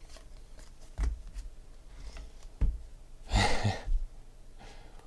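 Stacks of cards are set down with soft taps.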